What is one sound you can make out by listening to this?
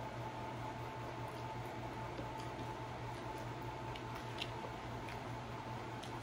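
A woman chews food wetly close to a microphone.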